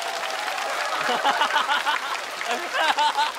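A young man laughs loudly and excitedly nearby.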